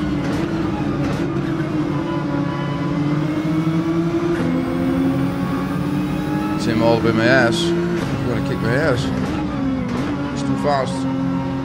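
A race car engine drones steadily, rising and falling in pitch as it shifts gears.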